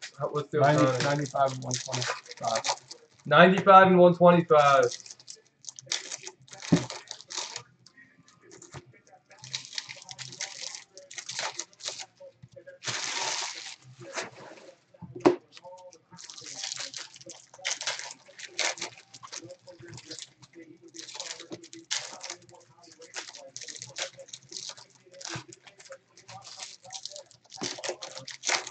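Foil card wrappers crinkle and rustle as they are torn open.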